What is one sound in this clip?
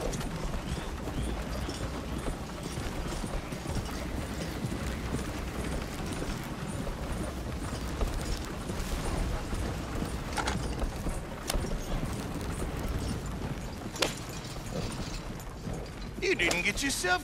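Horses' hooves clop steadily.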